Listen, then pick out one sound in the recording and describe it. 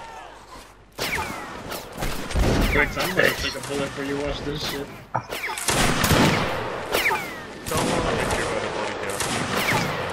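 Muskets fire in rapid, cracking shots.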